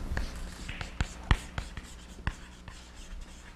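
Chalk taps and scrapes on a blackboard.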